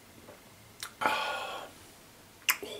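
A man exhales with a breathy sigh.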